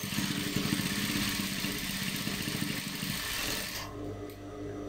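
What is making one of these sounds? A sewing machine whirs rapidly as it stitches fabric.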